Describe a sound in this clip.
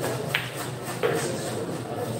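Billiard balls click together.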